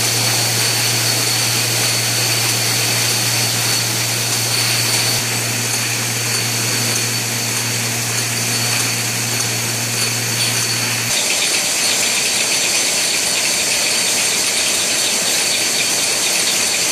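Glass bottles clink and rattle against each other on a moving conveyor.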